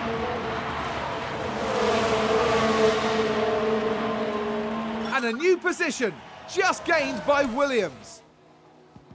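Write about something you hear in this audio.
Racing car engines roar loudly and whine past at high speed.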